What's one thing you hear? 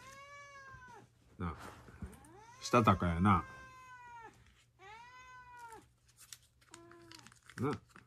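A cat meows close by, several times.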